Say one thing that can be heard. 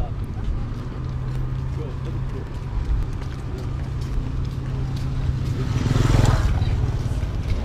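A motor scooter engine hums steadily nearby.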